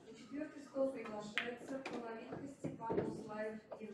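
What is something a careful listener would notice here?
A cue strikes a pool ball with a sharp tap.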